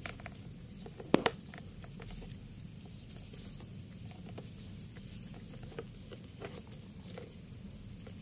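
A kitten paws and scratches at a plastic toy truck.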